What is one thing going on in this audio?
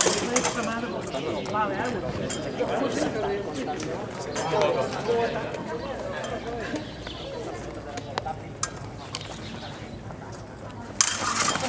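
Several adults chatter and call out nearby, outdoors.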